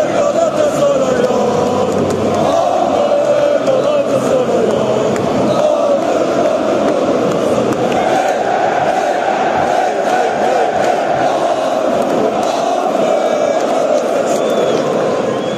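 A huge crowd of men chants loudly in unison, echoing around a vast stadium.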